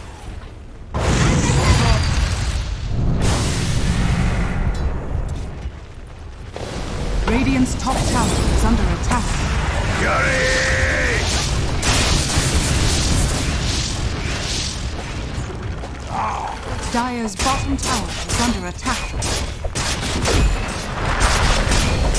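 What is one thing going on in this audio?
Spells crackle and explode in a busy fight.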